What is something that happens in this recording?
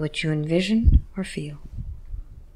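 A woman speaks briefly and softly, close to a microphone.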